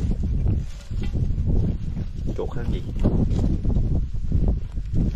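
Hands dig and scrape through dry earth and grass close by.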